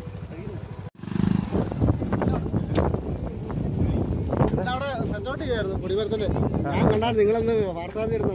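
Men talk loudly nearby outdoors.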